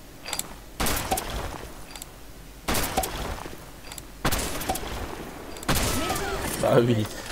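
A sniper rifle fires loud, booming shots a few seconds apart, each followed by a short echo.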